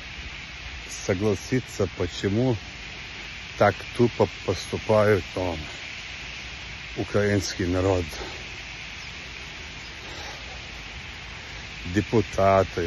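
A man speaks calmly and close to a phone microphone, in short phrases.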